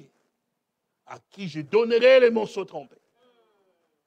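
A man preaches forcefully into a microphone.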